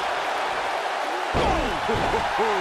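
A body slams hard onto a wrestling ring.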